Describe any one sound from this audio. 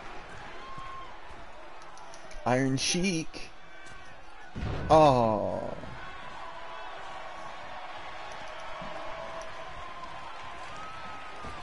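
A crowd murmurs and cheers steadily.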